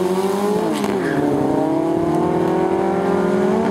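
A race car engine roars and rises in pitch as the car speeds away.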